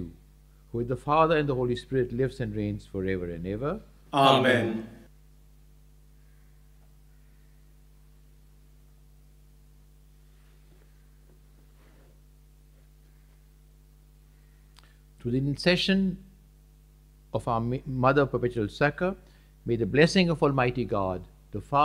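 An elderly man speaks calmly and solemnly into a microphone, in a slightly reverberant room.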